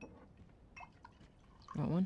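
Liquid glugs as it is poured from a bottle into a glass.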